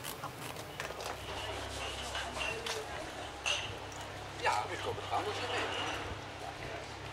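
A man and a woman talk quietly nearby.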